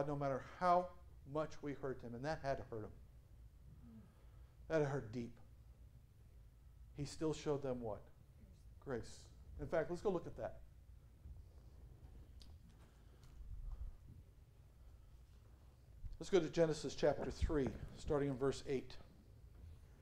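A middle-aged man speaks calmly and with emphasis into a microphone, in bursts with long pauses.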